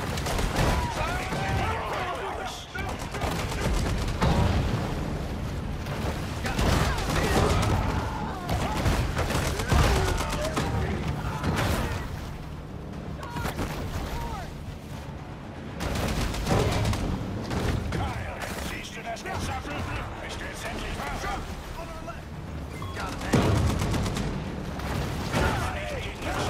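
Explosions boom several times.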